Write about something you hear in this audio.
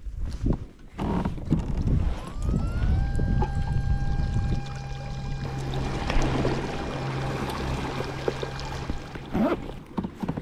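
An electric boat motor hums steadily.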